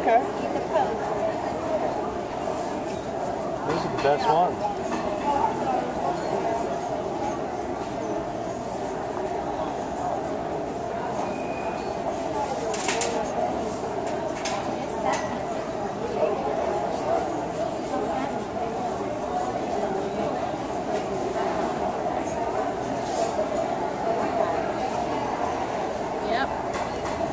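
A crowd murmurs and chatters steadily in a large indoor hall.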